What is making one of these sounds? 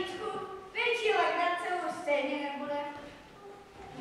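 A young girl speaks loudly and with animation.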